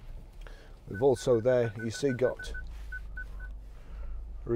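An electronic beep repeats quickly after a button is pressed.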